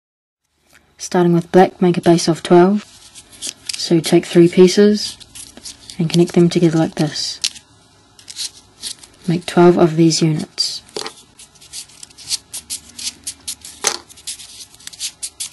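Folded paper pieces rustle and click as fingers push them together.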